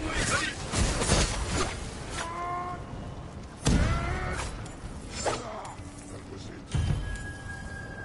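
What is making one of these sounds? Swords clash and slash.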